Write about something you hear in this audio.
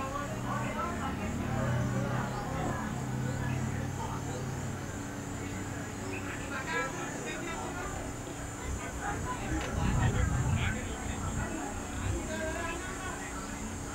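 Cricket players call out to each other faintly across an open field.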